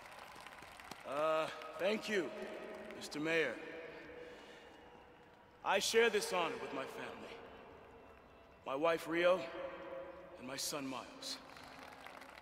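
A man speaks through a microphone to a crowd, calmly and formally.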